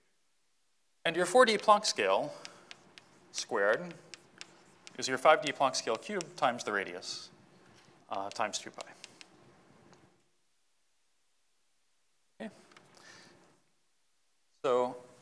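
A man speaks steadily, as if lecturing.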